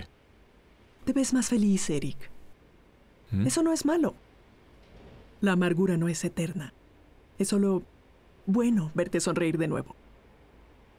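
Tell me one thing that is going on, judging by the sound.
A middle-aged woman speaks calmly and thoughtfully, close by.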